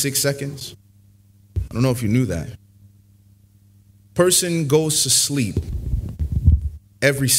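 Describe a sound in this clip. A man speaks into a microphone in short bursts with pauses, in a calm, preaching voice.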